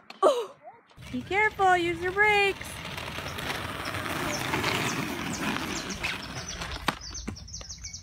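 Small plastic wheels roll and rattle over pavement.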